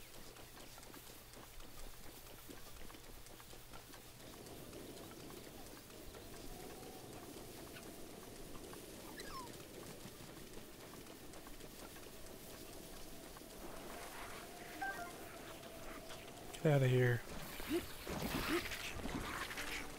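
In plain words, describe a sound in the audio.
Footsteps rustle quickly through tall grass.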